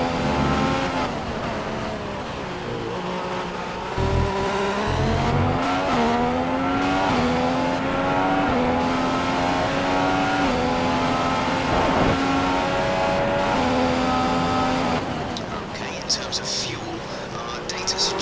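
A Formula One car engine drops in pitch as the car brakes for a corner in a racing game.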